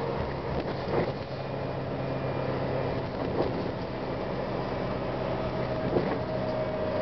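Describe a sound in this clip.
The bus body rattles and knocks now and then.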